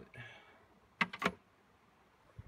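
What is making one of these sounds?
A hand taps on a wooden box.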